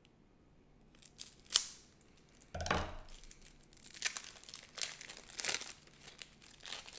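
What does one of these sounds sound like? Plastic bags crinkle and rustle close by.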